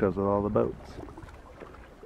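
A paddle dips and splashes in water.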